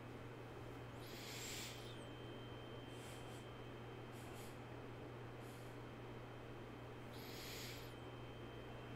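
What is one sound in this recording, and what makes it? A man breathes out slowly and deeply close to a microphone.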